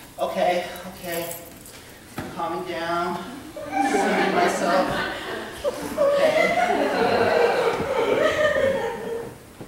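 A man speaks expressively in a room with a slight echo.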